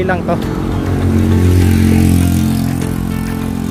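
A motorcycle engine hums as it passes close by.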